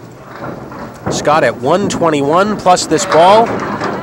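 A bowling ball rolls down a wooden lane.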